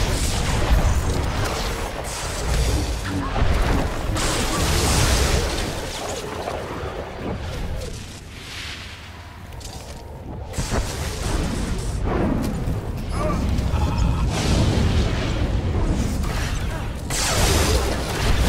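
Electric zaps crackle and buzz in a game fight.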